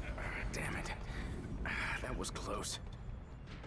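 A man mutters in a low, tense voice.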